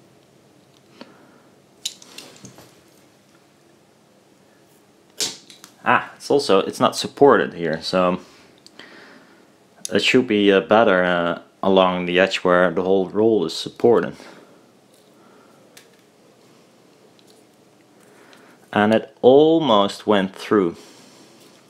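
Small metal parts click and scrape together.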